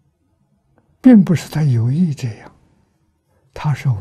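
An elderly man speaks calmly and slowly into a microphone, close by.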